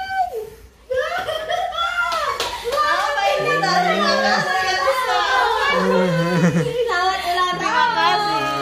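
Several women talk and laugh together nearby.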